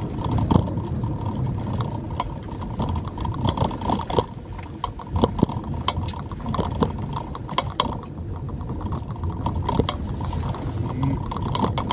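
A windshield wiper swishes across wet glass.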